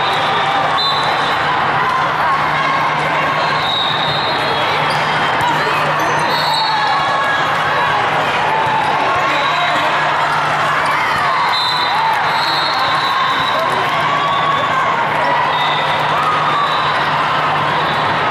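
A crowd of young players and spectators chatters and calls out in a large echoing hall.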